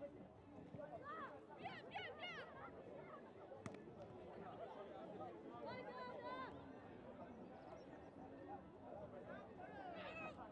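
Young women players shout to each other across the field.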